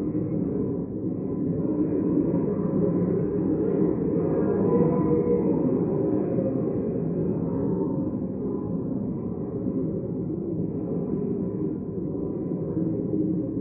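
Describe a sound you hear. Many people murmur and talk at once in a large echoing hall.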